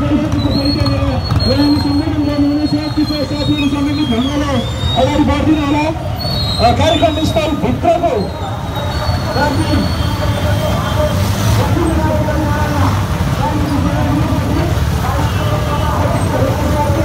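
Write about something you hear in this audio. Many motorcycle engines idle and rev nearby.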